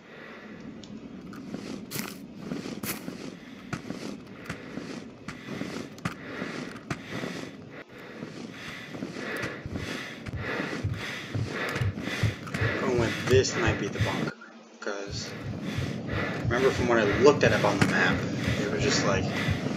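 Footsteps tread steadily over wet ground.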